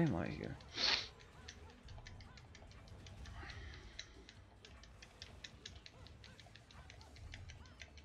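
Blades slash and strike in quick, sharp hits.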